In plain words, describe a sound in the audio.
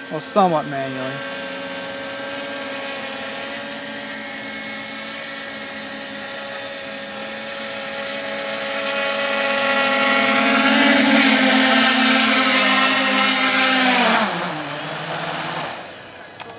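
A small drone's propellers whir with a steady high buzz that grows louder as it comes closer.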